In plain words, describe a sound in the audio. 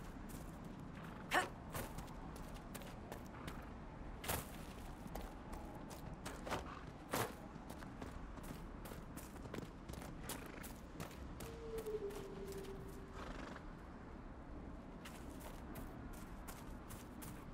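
Footsteps thud softly across grass at a running pace.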